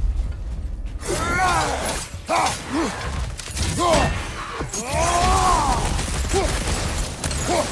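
Creatures growl and snarl loudly.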